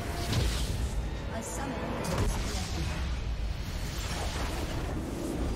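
Fantasy battle sound effects clash and burst loudly.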